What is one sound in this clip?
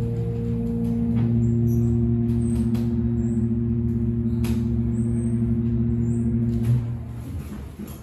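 An escalator motor hums steadily and then stops.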